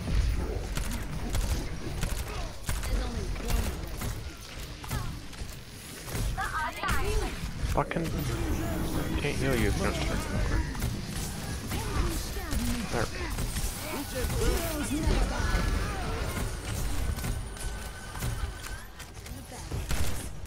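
A game gun fires rapid shots.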